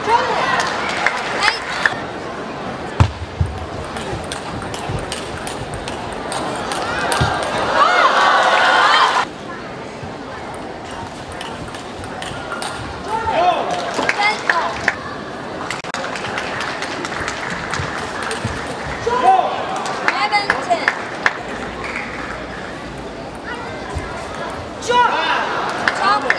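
A table tennis ball clicks back and forth off paddles and the table in quick rallies.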